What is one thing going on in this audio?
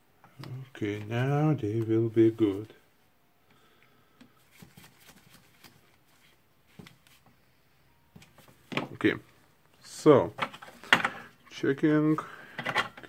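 Small plastic parts click and rattle as they are handled.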